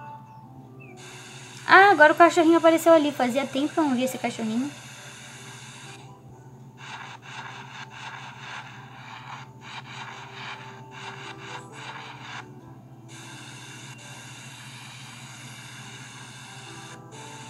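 Water sprays steadily from a hose.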